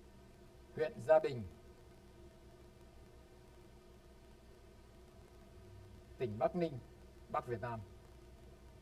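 An older man speaks calmly into a microphone in short phrases.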